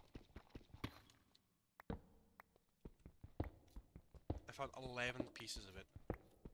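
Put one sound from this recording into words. A video game pickaxe chips at stone blocks.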